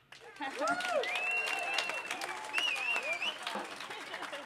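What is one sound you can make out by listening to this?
A young woman laughs and speaks into a microphone nearby.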